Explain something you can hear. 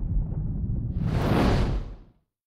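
A fiery explosion bursts with a deep roar.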